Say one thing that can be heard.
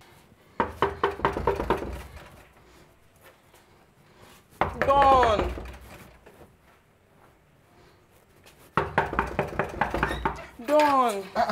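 A woman knocks repeatedly on a wooden door.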